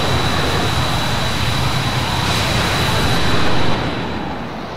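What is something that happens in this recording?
A jet aircraft roars loudly as it flies past.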